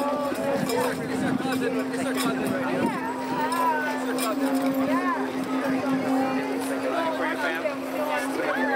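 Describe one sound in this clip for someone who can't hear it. A large outdoor crowd of men and women chatters and calls out all around.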